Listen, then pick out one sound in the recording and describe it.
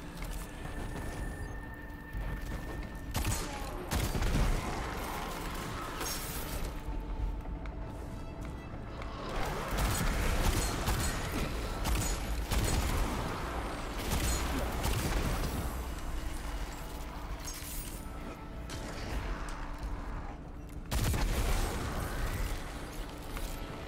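Guns fire in rapid bursts with loud blasts.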